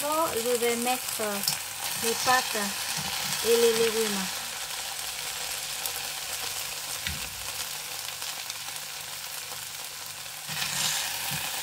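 A metal ladle scrapes and clinks against a frying pan.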